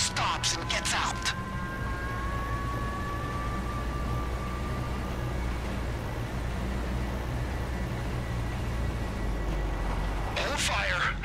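A vehicle engine rumbles steadily at a distance.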